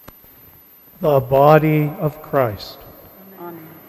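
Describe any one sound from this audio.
A man chants a short phrase through a microphone, echoing in a large hall.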